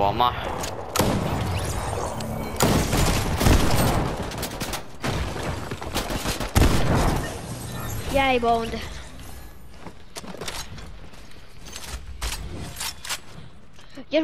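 Gunshots ring out in sharp, rapid bursts.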